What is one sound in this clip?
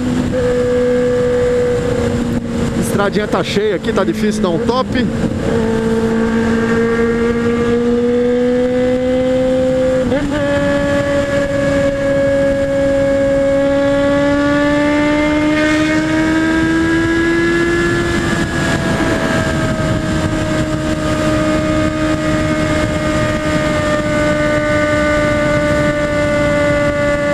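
An inline-four sport motorcycle engine whines while cruising at high speed.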